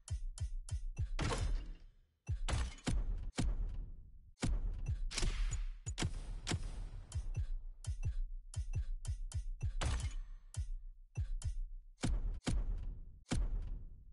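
Short game menu clicks sound again and again as selections change.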